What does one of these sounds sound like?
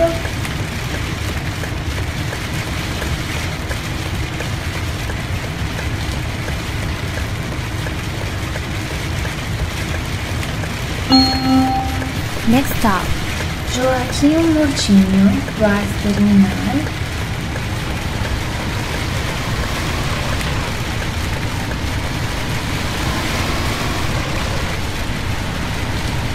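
A bus engine rumbles steadily, growing a little louder as the bus pulls away.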